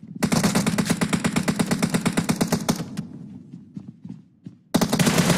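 An automatic rifle fires rapid bursts close by.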